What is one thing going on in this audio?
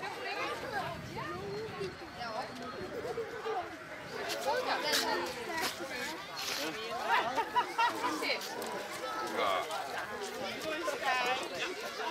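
A man talks playfully to small children close by.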